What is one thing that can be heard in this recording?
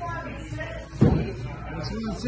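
An axe thuds hard into a wooden target.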